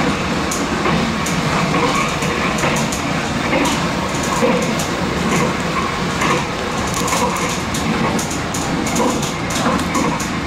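Train wheels click and clatter over rail joints.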